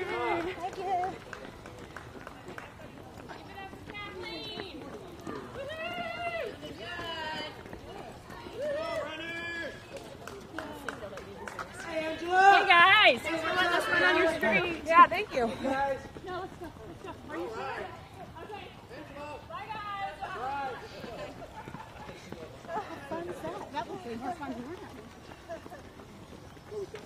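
Runners' footsteps patter on pavement.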